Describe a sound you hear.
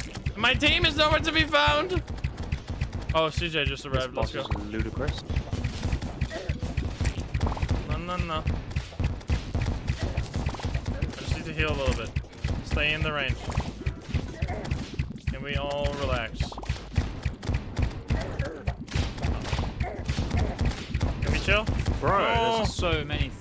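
Rapid electronic video game shots and blasts fire repeatedly.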